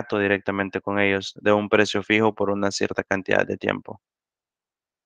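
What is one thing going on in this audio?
A young man speaks calmly through a headset microphone on an online call.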